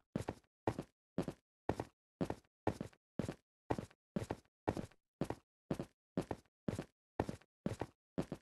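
Footsteps climb steadily up stone stairs in a quick, even rhythm.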